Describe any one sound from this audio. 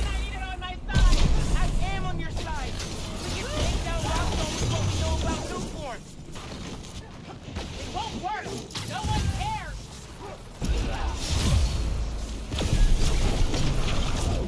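Explosions and impacts boom loudly.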